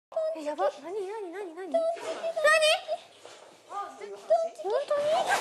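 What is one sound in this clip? A young woman talks excitedly nearby.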